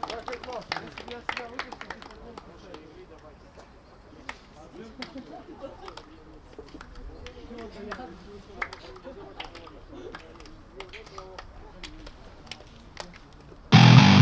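Hands slap together as players shake hands.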